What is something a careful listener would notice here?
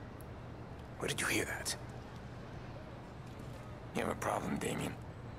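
Another man answers in a low voice.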